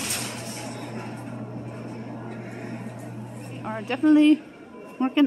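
An elevator hums steadily.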